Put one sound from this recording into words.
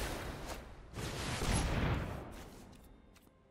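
A magical whoosh sweeps past with a shimmering sparkle.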